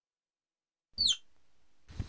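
A bird of prey gives a short, sharp screech.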